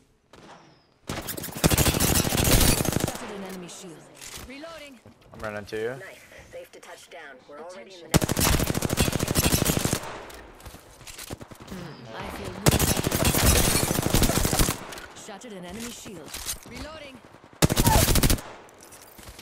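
An automatic rifle fires in loud rapid bursts.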